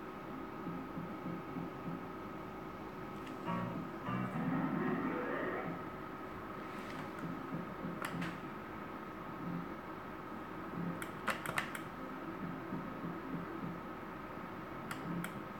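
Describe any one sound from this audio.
Slot machine reels whir and click as they spin.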